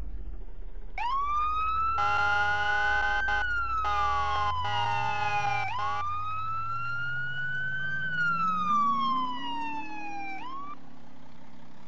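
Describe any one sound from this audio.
A siren wails, rising and falling.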